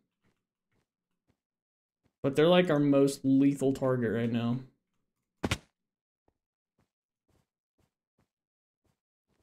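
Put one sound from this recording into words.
Blocks are placed with soft, quick clicks.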